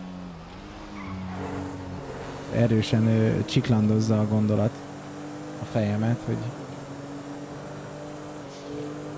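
A car engine hums steadily as the car accelerates.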